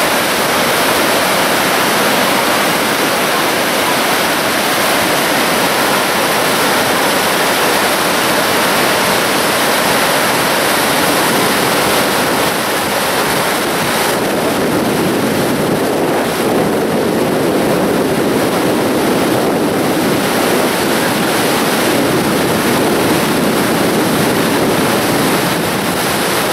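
River rapids rush and churn.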